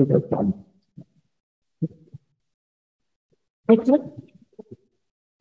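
A man speaks into a microphone in short bursts.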